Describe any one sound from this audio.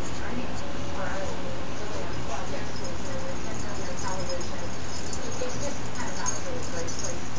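A baby coos and gurgles close by.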